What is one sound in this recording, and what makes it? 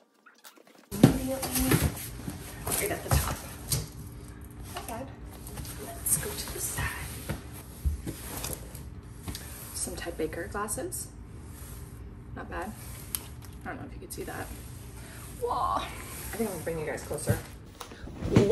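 A young woman talks casually and close by.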